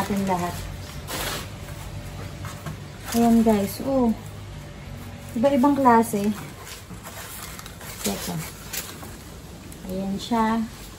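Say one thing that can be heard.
Leaves rustle as a woman handles a plant.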